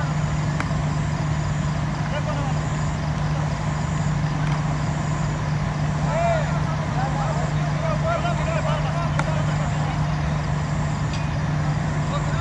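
Men argue loudly in the distance outdoors.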